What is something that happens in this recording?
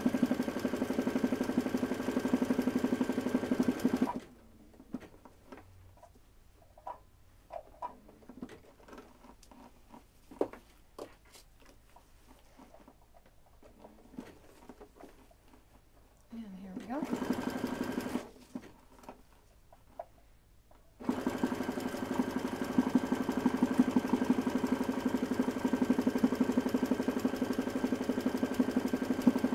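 A sewing machine hums and whirs steadily as it stitches, stopping and starting again.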